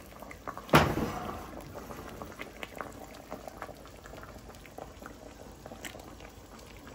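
Water bubbles and pops at a steady boil.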